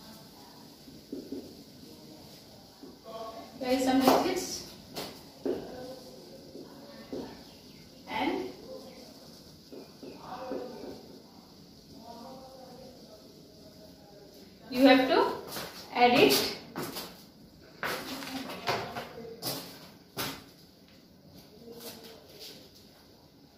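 A young woman speaks calmly, as if teaching, close by.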